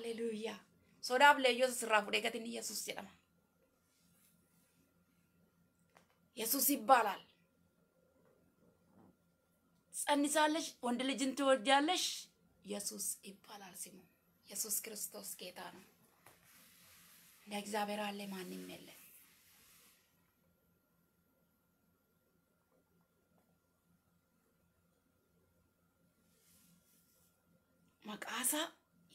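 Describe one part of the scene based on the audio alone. A young woman speaks calmly in pauses, heard through an online call.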